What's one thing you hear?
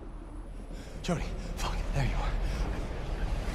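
A young man shouts in alarm.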